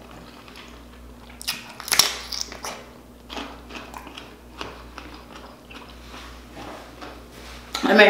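A young man chews and smacks his lips close to a microphone.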